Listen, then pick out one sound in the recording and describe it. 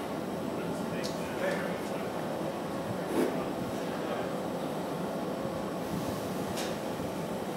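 Metal rods clink against a metal bin.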